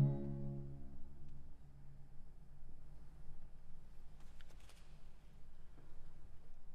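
A double bass bows a low, sustained note.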